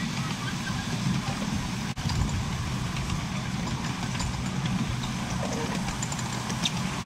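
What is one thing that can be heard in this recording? A miniature train rumbles and clatters steadily along its track.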